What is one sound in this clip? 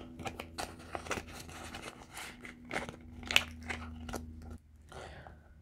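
Paper money rustles and crinkles against a plastic sleeve.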